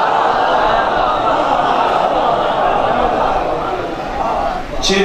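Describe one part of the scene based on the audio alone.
A young man recites loudly and with feeling through a microphone, in an echoing space.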